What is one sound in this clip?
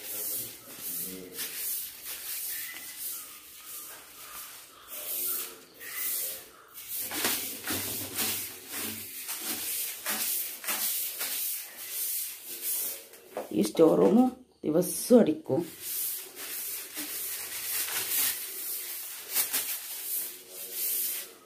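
A broom sweeps across a hard floor in quick, scratchy strokes.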